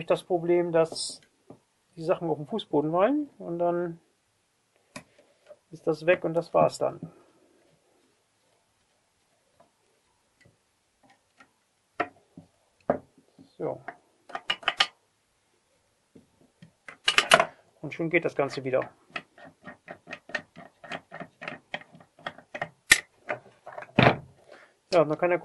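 A screwdriver clicks and taps against a metal plate.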